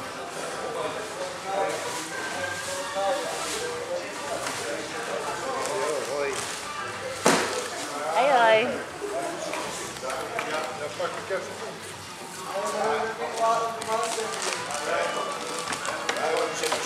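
Several adults talk and chatter nearby in a large echoing room.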